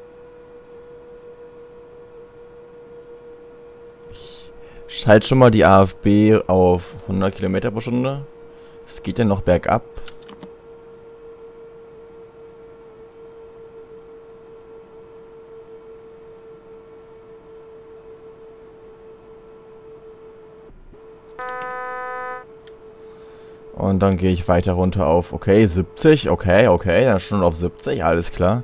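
An electric train motor hums with a steady whine.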